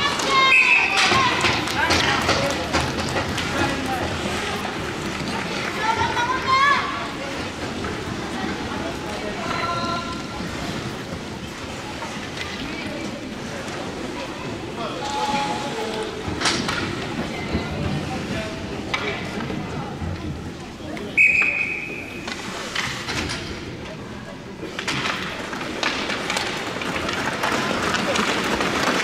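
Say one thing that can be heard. Skates scrape and carve across an ice rink.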